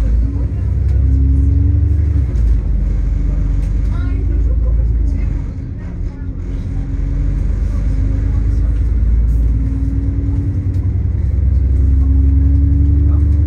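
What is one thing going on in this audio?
An engine whines, rising and falling in pitch as the bus speeds up and slows.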